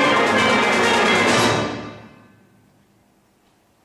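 A brass band plays a loud final chord that dies away in a large echoing hall.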